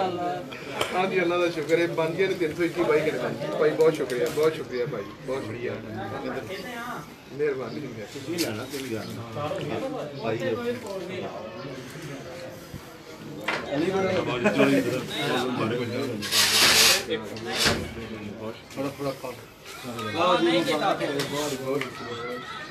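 Several men talk over one another nearby, outdoors.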